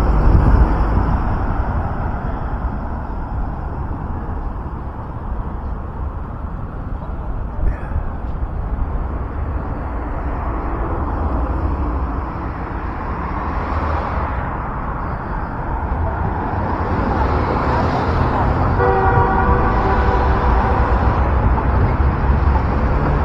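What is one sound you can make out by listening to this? Wind buffets a microphone outdoors.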